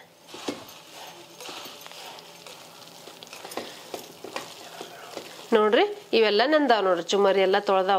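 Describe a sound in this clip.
Puffed rice rustles as a hand mixes it.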